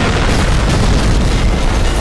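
An explosion booms amid battle noise.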